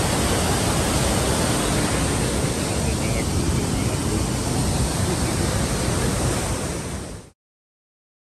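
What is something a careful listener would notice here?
Rushing water roars loudly and steadily close by.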